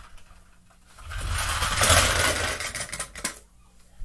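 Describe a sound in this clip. Toy cars roll across a wooden floor.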